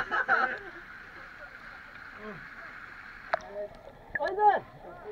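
Air bubbles gurgle underwater.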